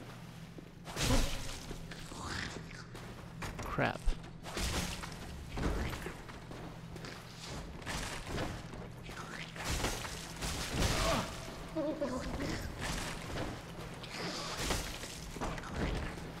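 Blades swing and strike with sharp hits.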